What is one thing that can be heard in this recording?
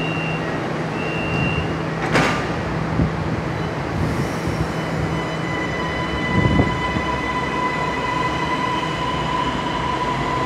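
A train rumbles and hums as it pulls away from a platform.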